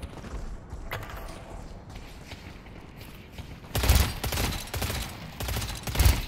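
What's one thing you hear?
A gun fires in rapid, loud blasts.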